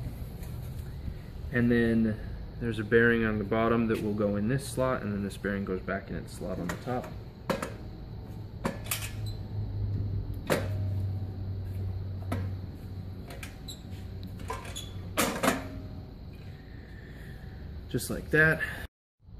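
A metal drum clicks and clanks as it is fitted into place.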